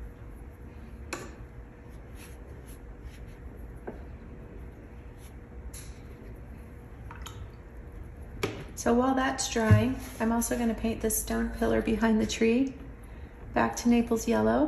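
A paintbrush dabs and swishes softly on paper.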